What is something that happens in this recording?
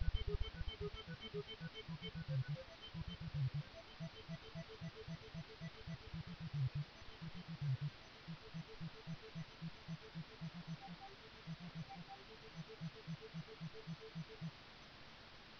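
Rapid retro game gunfire blips repeat quickly.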